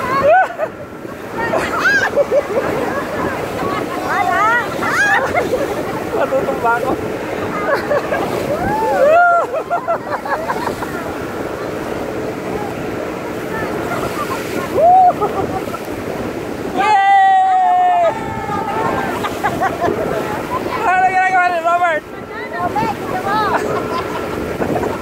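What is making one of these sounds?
A man laughs and shouts up close.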